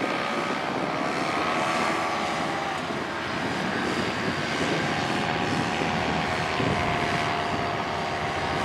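A small motor drones overhead, its pitch wavering slightly.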